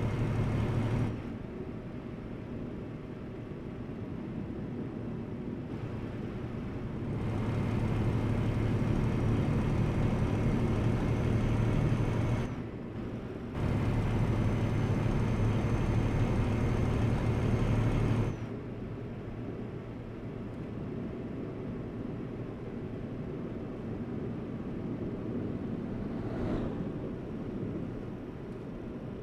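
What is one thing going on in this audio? A truck engine drones steadily, rising and falling in loudness.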